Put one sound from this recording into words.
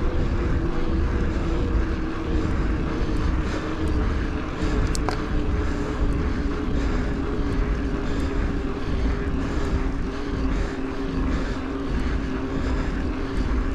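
An electric bike motor whines steadily.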